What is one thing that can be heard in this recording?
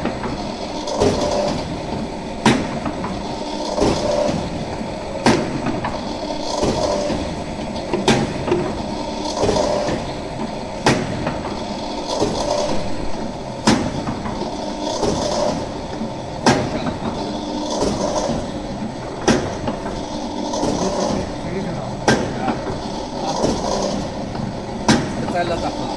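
A metal mechanism clacks sharply at regular intervals.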